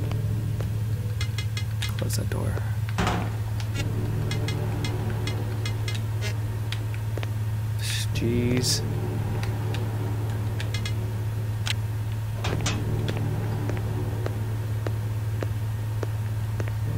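A young man speaks now and then into a headset microphone.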